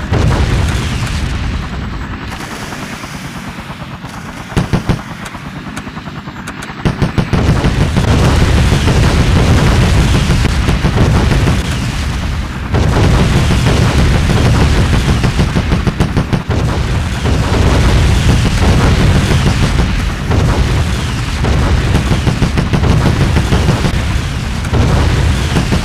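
A rapid-fire cannon rattles in bursts.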